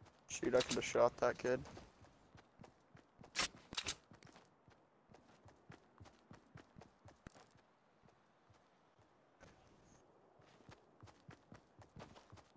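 A game character's footsteps patter on grass.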